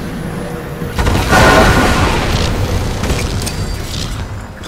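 A loud electric blast crackles and roars.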